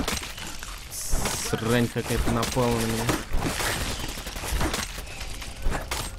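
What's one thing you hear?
Heavy melee blows thud and squelch against small creatures.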